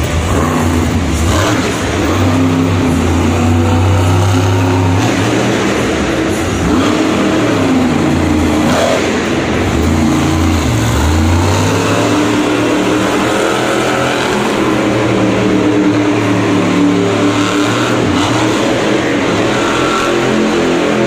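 A monster truck engine roars loudly and revs up and down in a large echoing arena.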